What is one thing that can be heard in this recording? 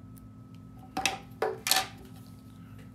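Scissors clack as they are set down.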